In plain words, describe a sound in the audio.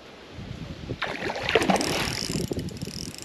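A fish splashes at the surface of the water.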